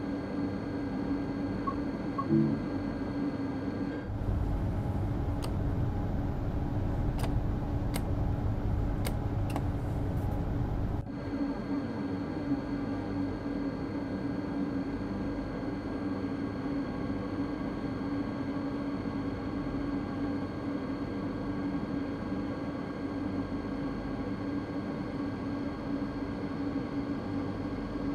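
A train's electric motor hums steadily as it rolls along the track.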